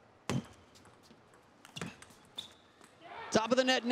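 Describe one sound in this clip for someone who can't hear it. A table tennis ball is struck with paddles and bounces on the table.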